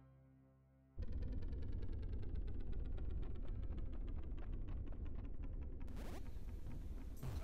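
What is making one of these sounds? Video game music plays with a steady, quick beat.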